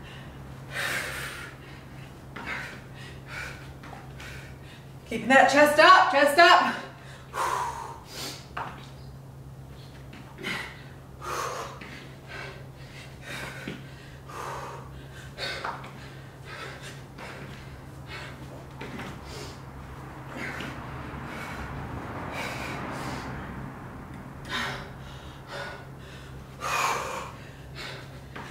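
A young woman talks in short breathless bursts nearby.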